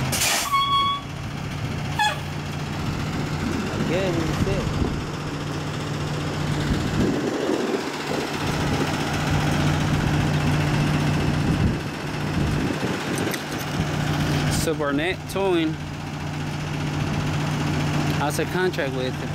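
A truck's engine idles with a steady low hum.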